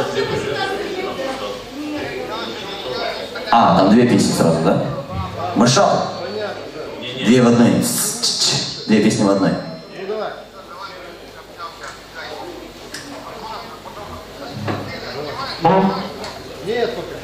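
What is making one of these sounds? A band plays rock music loudly through loudspeakers.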